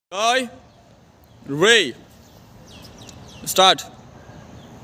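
A group of boys shout sharply together, three times.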